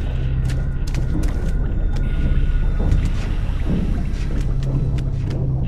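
Footsteps tread steadily on a hard, gritty floor.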